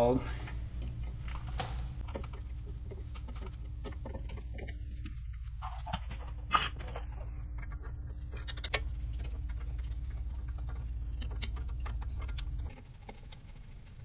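Metal tools clink and tap against a brake assembly.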